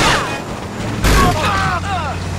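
A car crashes into something with a loud thud.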